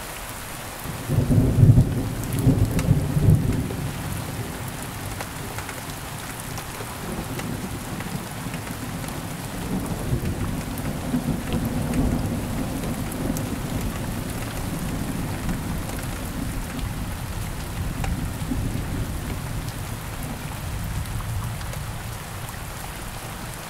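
Thunder rumbles deeply, cracks loudly, then rolls on and slowly fades.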